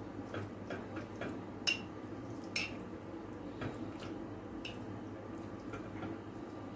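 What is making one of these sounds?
Fingers rustle through dried food in a bowl.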